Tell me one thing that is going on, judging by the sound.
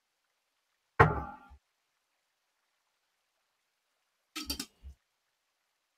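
A metal lid clinks and scrapes against a glass jar.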